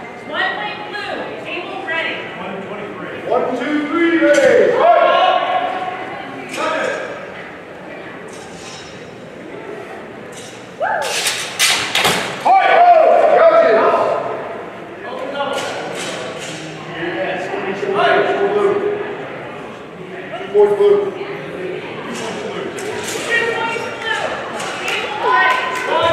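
Men talk and call out nearby in a large echoing hall.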